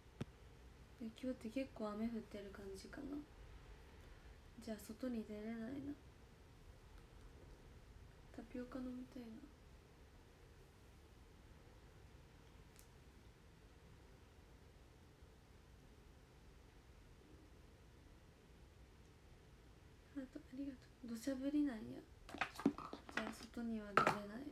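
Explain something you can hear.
A young woman talks softly and casually, close by, in bursts with long pauses.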